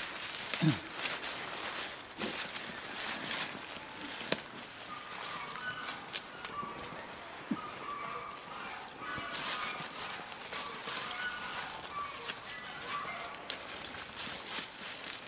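Dry leaves rustle and crunch under animals' feet.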